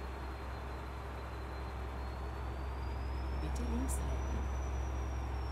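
A truck engine drones low and steady.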